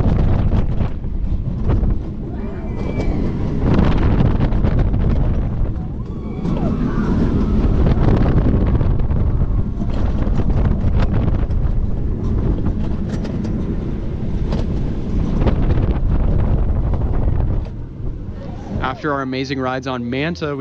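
A roller coaster car rattles and clatters along its track.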